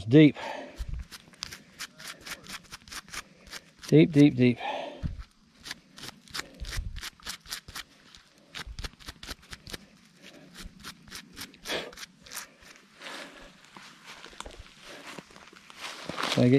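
A stiff-bristled brush scrubs dirt off a small find.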